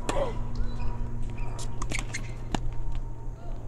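A tennis ball is struck sharply by a racket several times.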